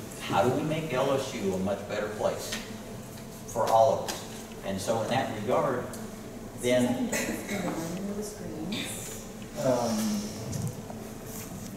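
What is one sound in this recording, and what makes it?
An older man speaks calmly into a microphone in a room with a slight echo.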